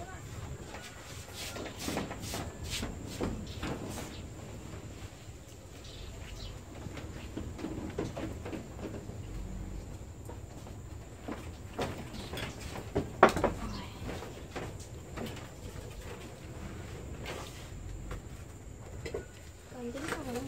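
Metal pots and utensils clink and clatter.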